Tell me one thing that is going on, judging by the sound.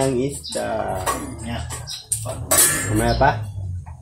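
A metal lid clinks against a cooking pot.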